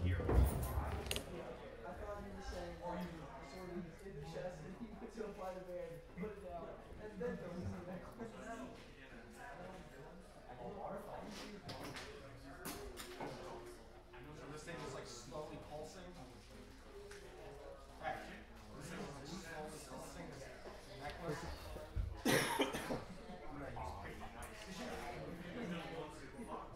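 Men talk calmly nearby in a room.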